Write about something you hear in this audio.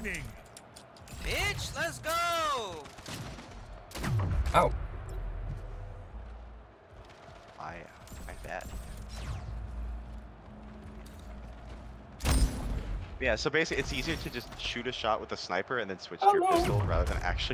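Laser guns fire in sharp, quick bursts.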